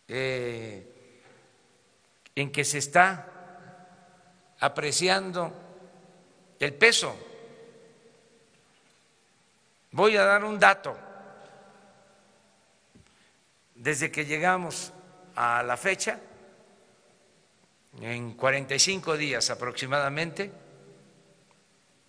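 An elderly man speaks calmly into a microphone in bursts, in a room with a noticeable echo.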